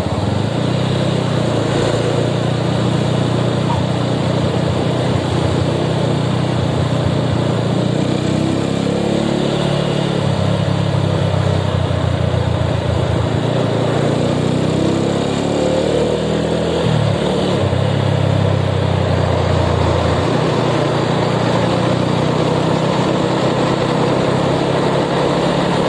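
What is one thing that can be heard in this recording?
Wind rushes past loudly.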